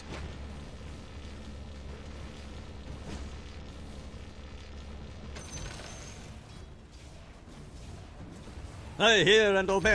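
Game spell effects and weapon hits clash in a fight.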